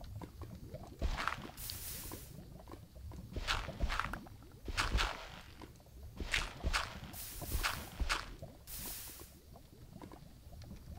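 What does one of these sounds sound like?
A shovel digs into gravelly dirt in short scrapes.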